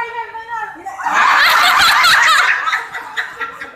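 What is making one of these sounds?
A man laughs and cheers loudly close by.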